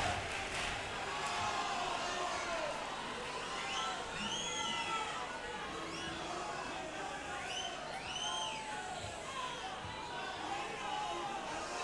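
A group of men sings together on stage in a large hall.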